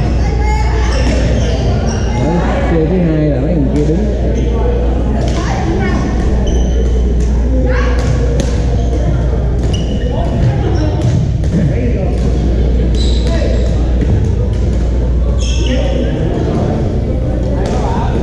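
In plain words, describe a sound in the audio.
Men and women talk and call out across a large echoing hall.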